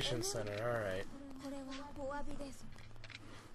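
A young woman speaks softly and calmly.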